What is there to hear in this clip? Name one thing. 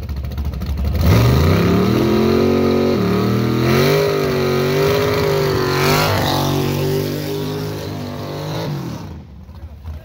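Tyres squeal and spin in a burnout on asphalt.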